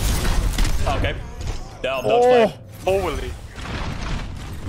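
A young man speaks with animation into a headset microphone.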